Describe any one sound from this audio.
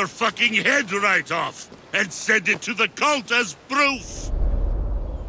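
A man speaks in a deep, threatening voice.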